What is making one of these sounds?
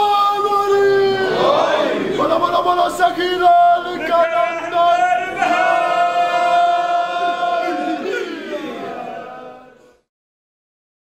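A young man chants loudly with feeling into a microphone.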